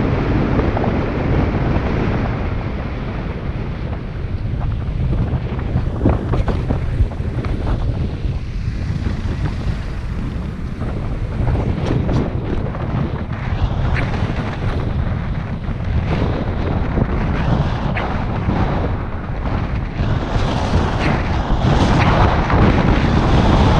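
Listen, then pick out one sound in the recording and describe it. Tyres hum steadily on a paved road.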